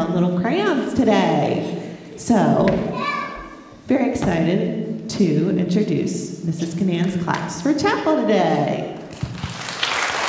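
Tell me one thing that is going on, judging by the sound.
Young children sing together in a large echoing hall.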